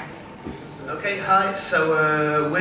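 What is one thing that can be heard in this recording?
A man speaks into a microphone through loudspeakers.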